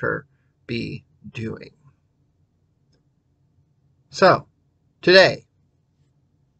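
A middle-aged man speaks calmly and close up, heard through a microphone on an online call.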